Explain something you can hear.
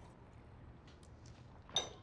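A woman sips a drink from a glass.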